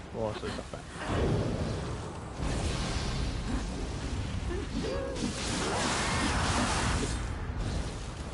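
Swords clash and slash in combat.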